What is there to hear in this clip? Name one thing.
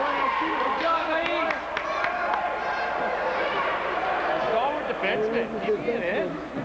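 Children shout and call out in a large echoing rink.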